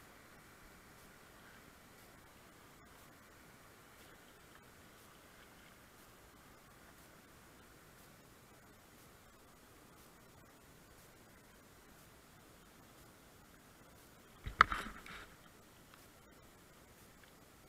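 River water rushes and gurgles around a kayak.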